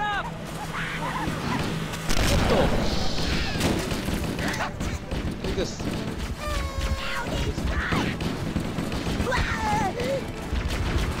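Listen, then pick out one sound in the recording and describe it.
Small alien creatures squeal and chatter.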